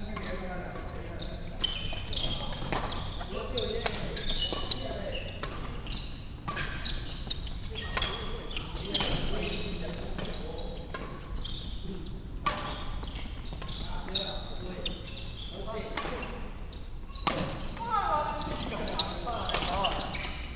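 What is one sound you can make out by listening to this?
Shuttlecocks are struck with rackets in sharp pops, in a large echoing hall.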